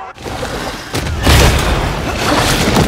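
A large monster roars loudly.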